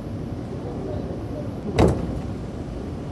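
Train doors slide open with a sharp thud.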